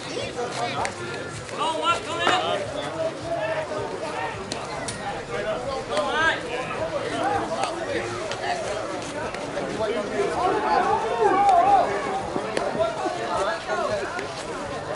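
Several men talk and call out outdoors, some close by and some farther off.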